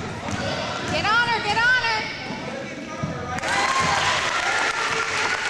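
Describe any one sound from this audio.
Young children shout and call out in a large echoing hall.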